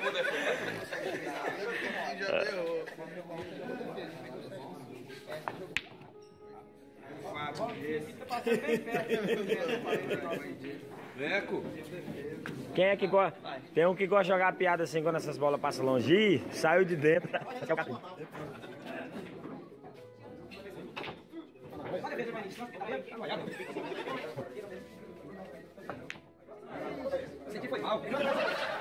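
A crowd of men and women talk and shout with excitement nearby.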